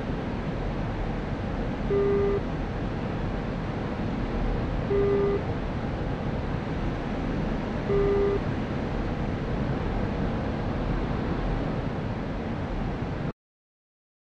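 A jet engine roars steadily, then cuts off abruptly.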